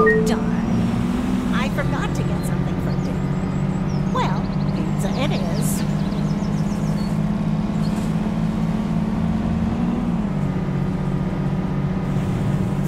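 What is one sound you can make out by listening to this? A bus engine hums steadily with a low, pulsing drone.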